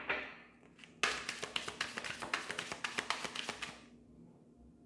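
A deck of cards riffles and flicks rapidly.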